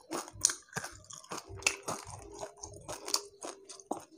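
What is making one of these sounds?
Crispy fried fish crackles as a young man tears it apart by hand.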